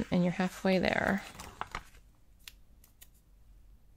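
A sticker peels off its backing sheet.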